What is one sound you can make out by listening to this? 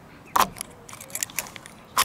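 A key turns in a lock with a metallic click.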